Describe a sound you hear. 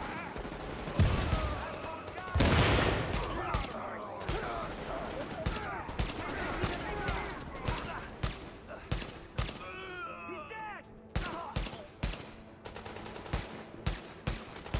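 A rifle fires loud, sharp shots again and again.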